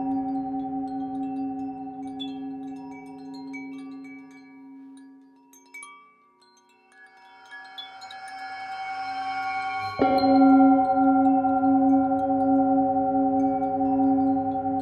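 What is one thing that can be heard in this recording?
A singing bowl rings with a steady, humming metallic tone that swells and fades.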